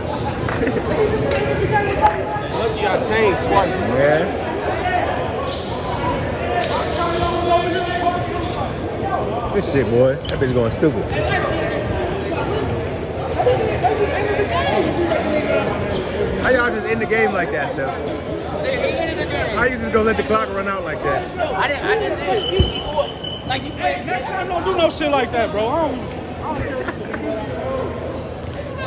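Many young men talk and shout over each other in an echoing gym.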